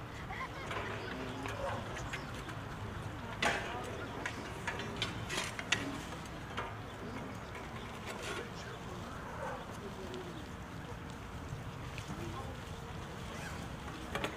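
Metal music stands clatter and clink in the distance outdoors.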